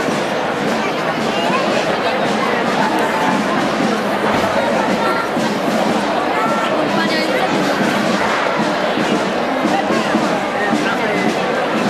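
A crowd of people chatters and murmurs outdoors.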